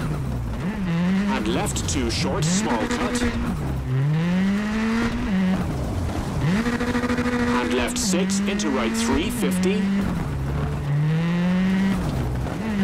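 Gravel crackles and sprays under a car's tyres.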